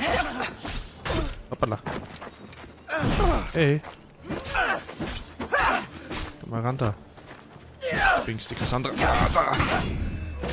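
Blades strike and clash in a fight.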